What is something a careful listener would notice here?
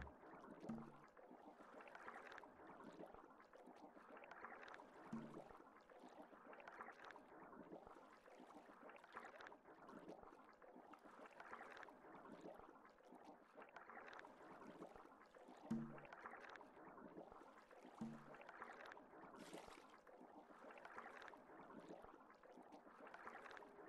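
Water whooshes underwater in slow, regular surges.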